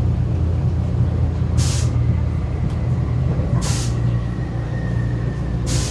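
A boat engine rumbles low and steady.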